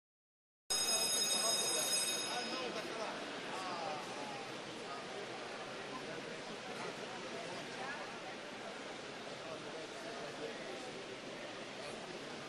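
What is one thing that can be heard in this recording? Many men and women murmur and chat at once in a large echoing hall.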